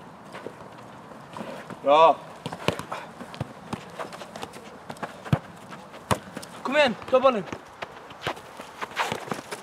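A ball is kicked and bounces with dull thuds.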